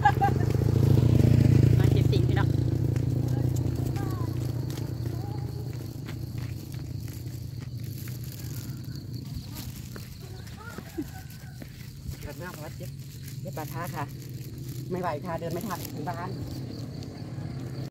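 Bare feet step softly on a dirt road.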